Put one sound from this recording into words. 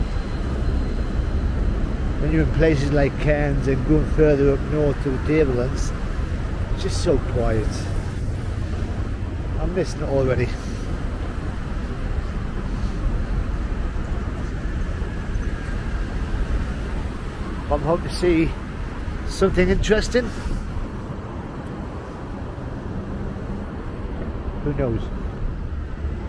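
Cars drive past on a busy road with a steady, low rumble.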